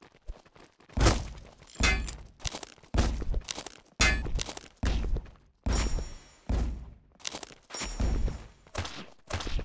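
Shotgun blasts boom again and again.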